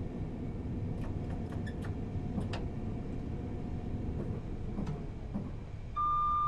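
Wheels click over rail joints.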